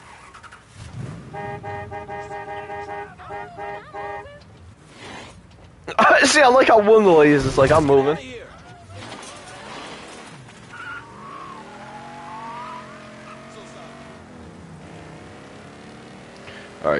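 Music plays from a car radio.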